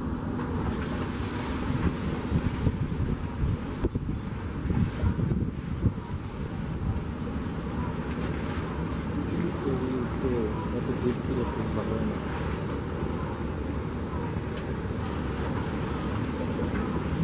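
A crowd of passengers chatters in the distance.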